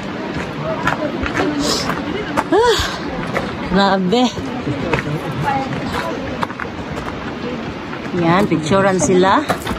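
Young women talk and call out nearby outdoors.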